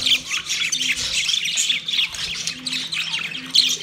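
A budgerigar flutters its wings.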